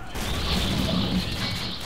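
A smoke grenade hisses loudly.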